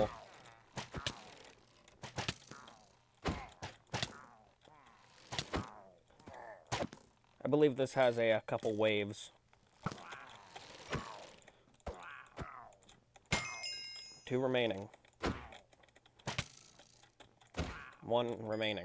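Sword blows land with sharp thuds.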